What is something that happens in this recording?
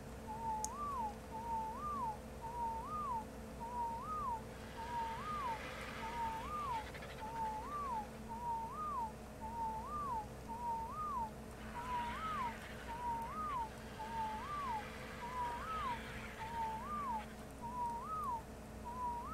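A large bird gives short rising chirps over and over, at a steady pace.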